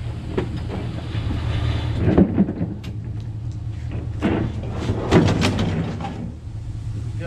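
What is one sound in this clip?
A large metal appliance scrapes and thumps as it slides onto a truck bed.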